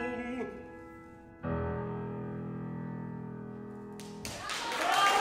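A piano plays a final chord that rings in a large echoing hall.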